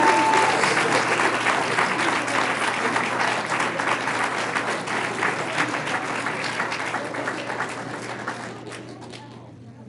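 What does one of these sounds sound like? A crowd applauds loudly in an echoing room, then the clapping dies away.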